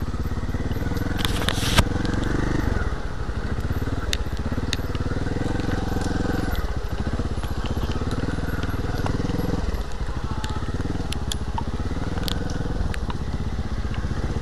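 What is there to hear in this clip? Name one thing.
Tyres crunch and rattle over bumpy dirt and roots.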